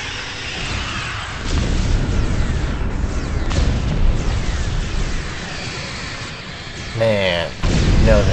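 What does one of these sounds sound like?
Energy weapons fire and zap in a rapid battle.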